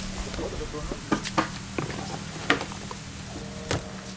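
Rubbish drops into a plastic bin with light knocks and rustles.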